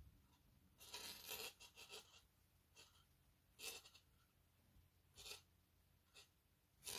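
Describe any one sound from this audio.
Hands rub and rustle a piece of crocheted yarn fabric in short bursts.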